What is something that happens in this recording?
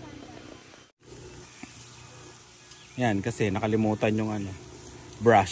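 Meat sizzles on a grill.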